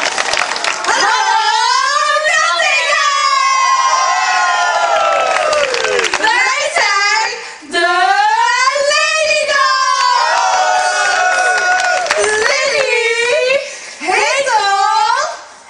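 Young women sing with a lively, wavering melody.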